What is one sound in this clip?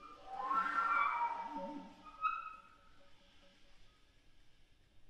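A flute and a clarinet play a short phrase together in an echoing hall, then the final notes ring out and fade.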